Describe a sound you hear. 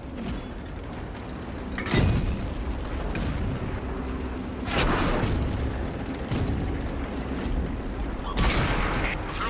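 A tank engine rumbles.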